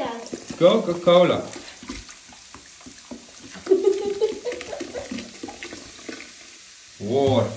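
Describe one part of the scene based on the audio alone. Fizzy soda glugs and splashes as it is poured into water.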